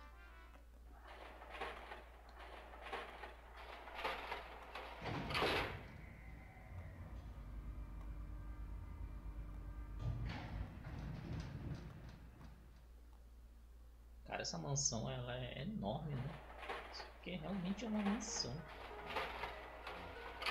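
Metal gates clatter and rattle as they slide open.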